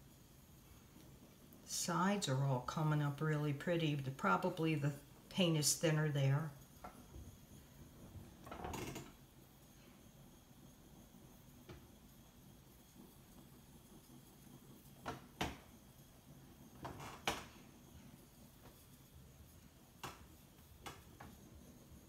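A small gas torch hisses steadily.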